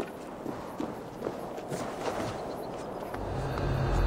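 Hands grip and scrape on rock while climbing.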